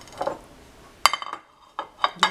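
A glass cup clinks against a ceramic saucer.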